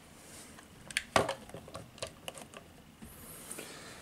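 A hand taps and rattles plastic display boxes.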